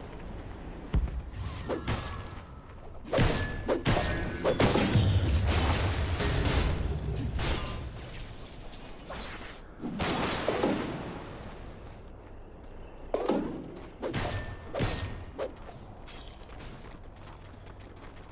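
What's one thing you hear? Game weapons clash and strike repeatedly.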